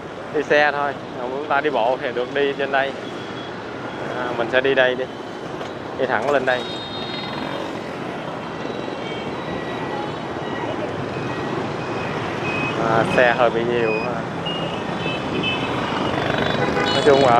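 Motorbike engines hum and whine steadily in busy street traffic.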